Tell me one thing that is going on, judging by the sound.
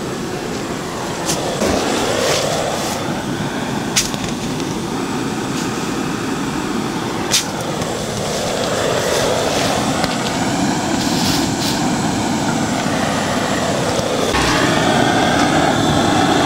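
Bees buzz steadily around the hives outdoors.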